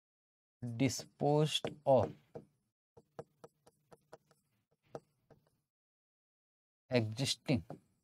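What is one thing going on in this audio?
A man speaks clearly and with animation, close to a microphone.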